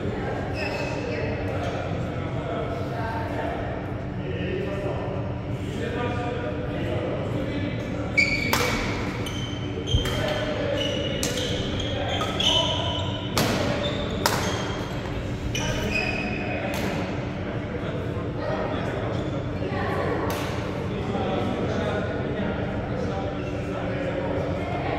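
Men call out to each other across a large echoing hall.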